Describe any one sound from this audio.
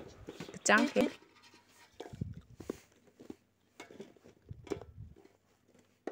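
Small fruits knock and roll against a metal bowl.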